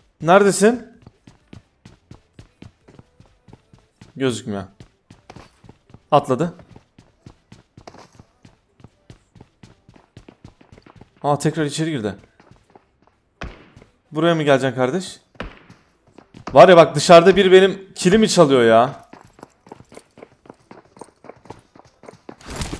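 Footsteps patter quickly and steadily on a hard floor.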